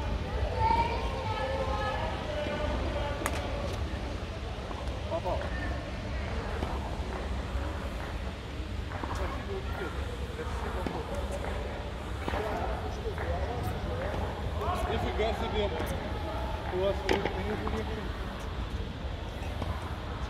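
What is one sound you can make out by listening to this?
Men talk casually nearby in a large echoing hall.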